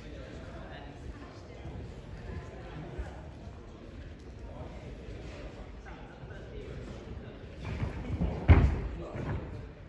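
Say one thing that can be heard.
Bare feet thump softly on a padded floor.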